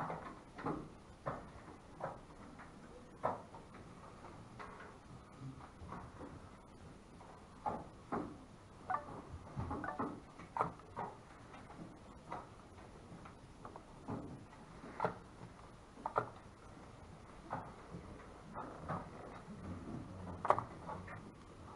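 Game pieces click and tap on a wooden board.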